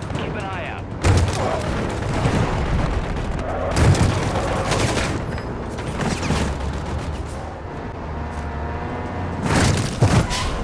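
Gunfire bursts out in loud cracks.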